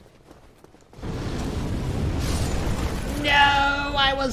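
Flames roar loudly in a burst of fire.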